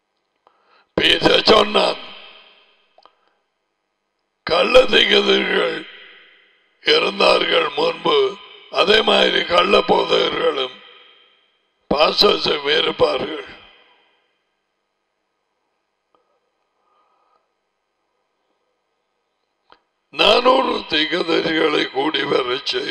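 An elderly man speaks with animation into a close microphone, in bursts with pauses.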